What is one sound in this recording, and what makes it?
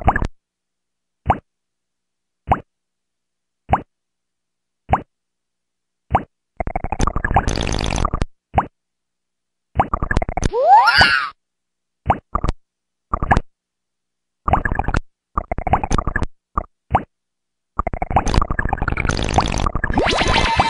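Retro video game sound effects beep and buzz in short, regular bursts.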